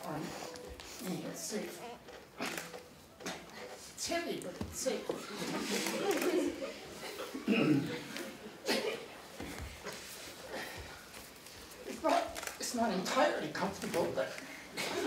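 Bare feet thump and slide on a wooden floor.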